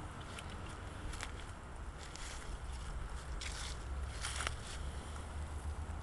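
A squirrel scampers and rustles through dry leaves on grass.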